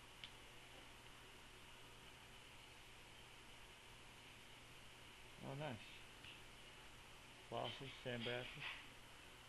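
Trading cards rustle softly as they are shuffled in hand.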